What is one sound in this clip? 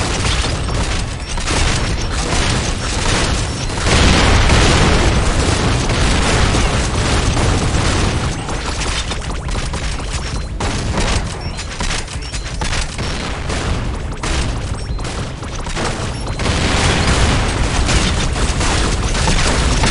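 A heavy gun fires rapid bursts.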